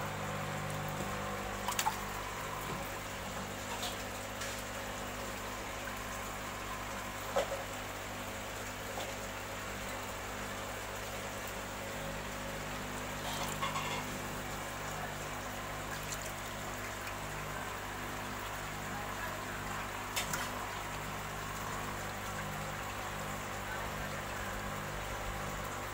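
Water trickles steadily into a tank.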